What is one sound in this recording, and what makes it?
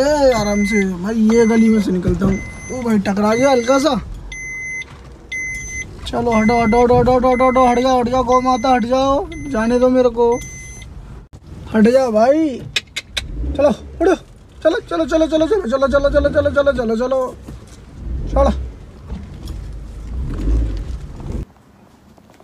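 A car engine rumbles low while driving.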